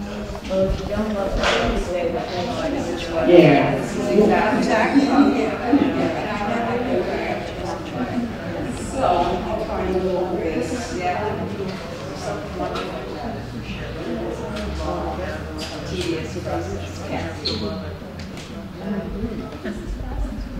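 A man speaks into a microphone over a loudspeaker in an echoing room.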